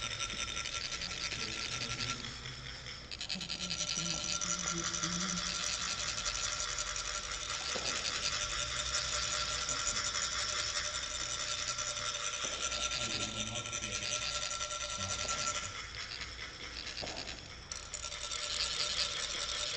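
Metal funnels rasp quickly and steadily as rods are rubbed along their ridges.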